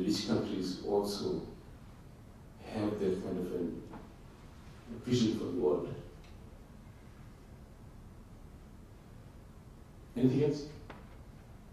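A middle-aged man speaks calmly into a microphone, in bursts with pauses, in a room with some echo.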